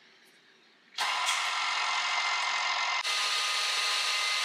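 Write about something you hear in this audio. An electric mixer whirs loudly as its whisk spins.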